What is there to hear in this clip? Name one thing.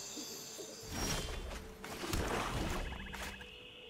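A short electronic whoosh and chime sound as a turn begins.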